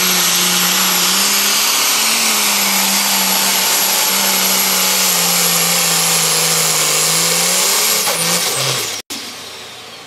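A pulling tractor's engine roars loudly at full power.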